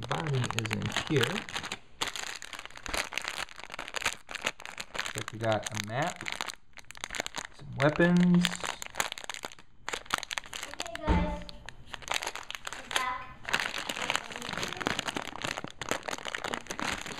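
Plastic bags crinkle and rustle.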